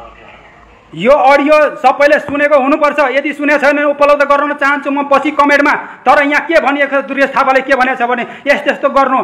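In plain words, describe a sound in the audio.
A man talks loudly and steadily.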